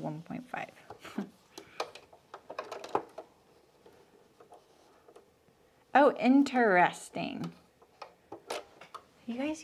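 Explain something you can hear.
Fabric rustles as hands smooth it under a sewing machine.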